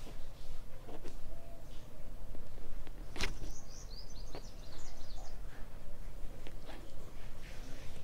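Fabric rustles softly under hands.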